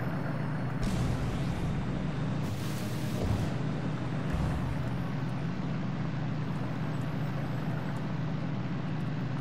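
A small underwater vehicle's motor hums steadily underwater.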